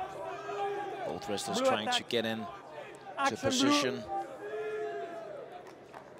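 A male referee shouts commands.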